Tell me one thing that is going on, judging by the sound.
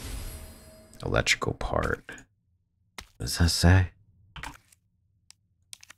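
Soft menu clicks and whooshes sound several times.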